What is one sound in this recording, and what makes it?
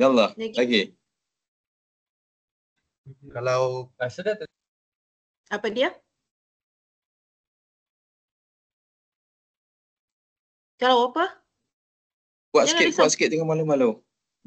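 A woman speaks calmly over an online call, in short bursts with long pauses.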